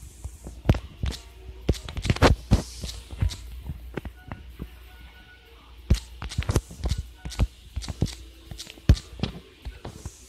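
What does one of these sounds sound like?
Fingers tap quickly on a phone's touchscreen keyboard.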